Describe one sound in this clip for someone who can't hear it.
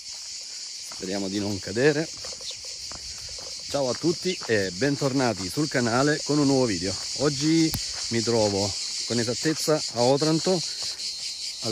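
A man talks calmly and closely into a microphone.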